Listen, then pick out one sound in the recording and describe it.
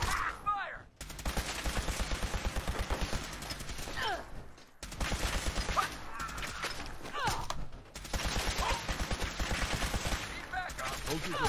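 A heavy gun fires rapid bursts of shots.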